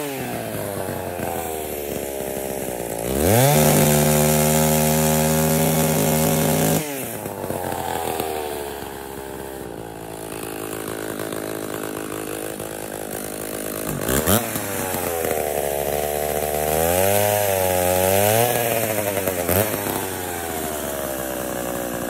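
A chainsaw engine idles steadily nearby.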